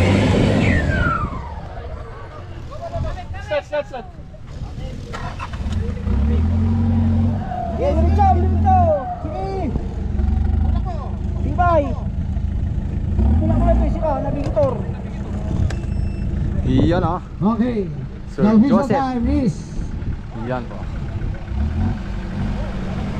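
An off-road truck engine rumbles and revs throughout.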